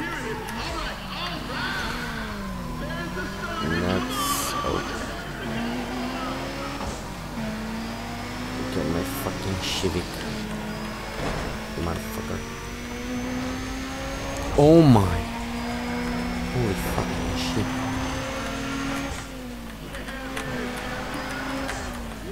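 A car engine revs high and shifts gears steadily.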